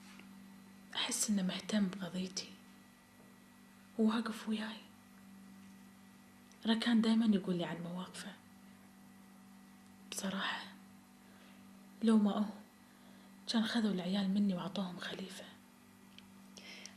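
A middle-aged woman speaks calmly nearby, in short phrases with pauses.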